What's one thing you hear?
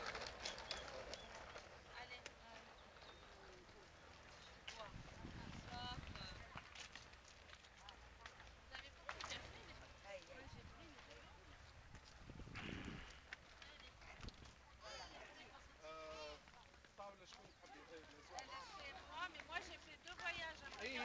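Several women talk in lively voices nearby, outdoors.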